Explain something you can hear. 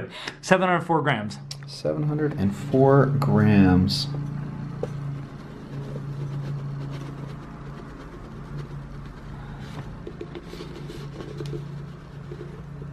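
Powder pours softly into a glass bowl.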